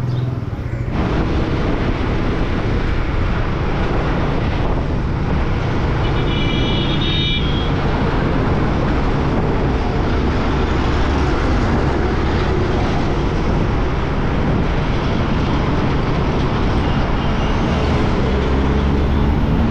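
Wind roars past a moving motorcycle.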